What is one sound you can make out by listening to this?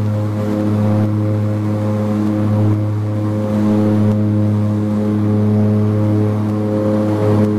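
A propeller engine drones loudly and steadily from close by.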